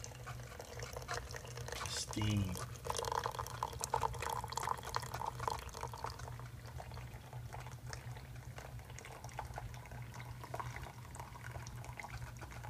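A coffee maker hums steadily.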